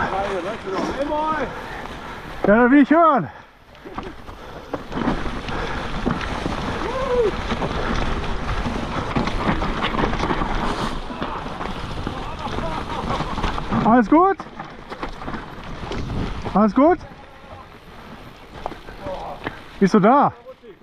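Bicycle tyres crunch and rustle over dry leaves on a bumpy trail.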